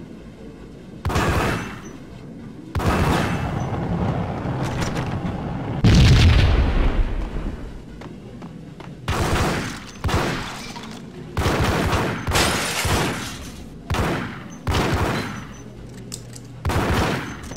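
Pistols fire in sharp bursts of shots.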